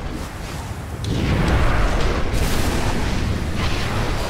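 A deep magical rumble hums.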